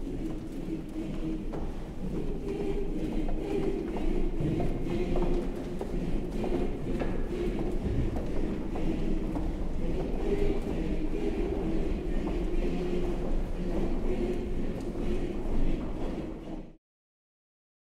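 A large choir sings together in an echoing hall.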